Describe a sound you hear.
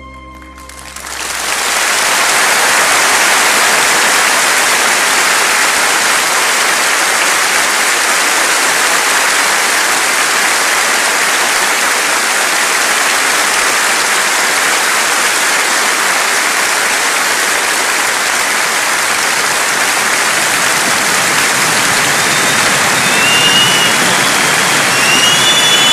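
A large audience applauds loudly and steadily in a big hall.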